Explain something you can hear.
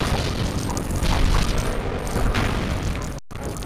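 Small plastic bricks clatter and scatter as an object breaks apart.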